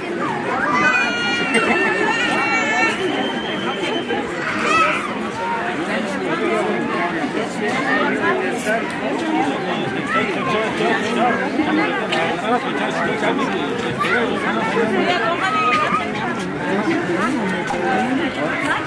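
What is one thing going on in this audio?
A crowd of men and women chatters close by.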